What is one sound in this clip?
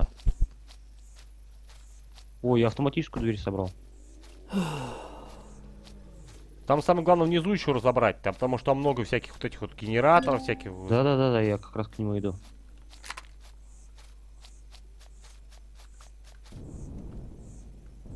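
Footsteps swish through tall grass.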